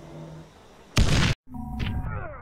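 A grenade explodes with a loud blast.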